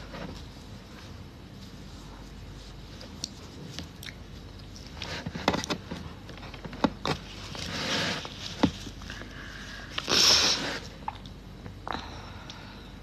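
Hands rustle and brush close to a microphone.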